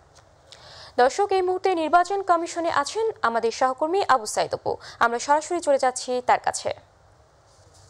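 A young woman reads out calmly into a microphone.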